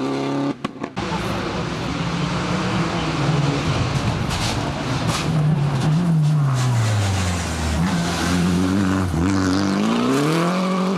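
A second rally car engine approaches, revving loudly, and races past.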